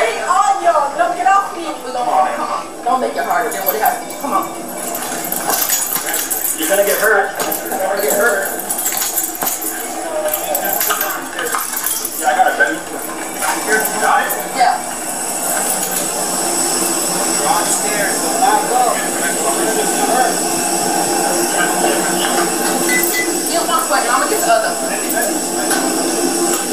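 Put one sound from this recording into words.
A woman shouts and cries out in distress close by.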